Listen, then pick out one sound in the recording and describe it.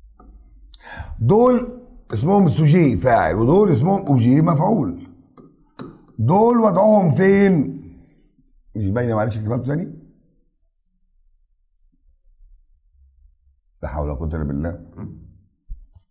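A middle-aged man speaks with animation into a close microphone, pausing now and then.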